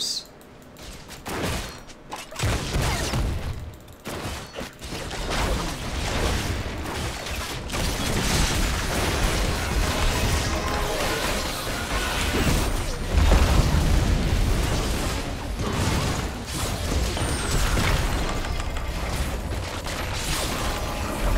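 Video game spells crackle and boom during a fight.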